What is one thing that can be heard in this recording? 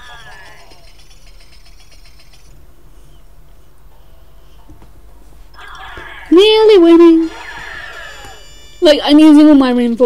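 A tablet game plays bright chiming jingles and tones.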